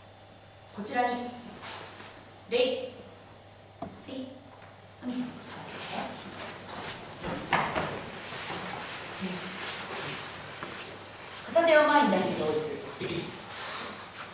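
A woman speaks firmly in an echoing room.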